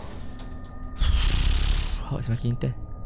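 An elevator door slides open with a low rumble.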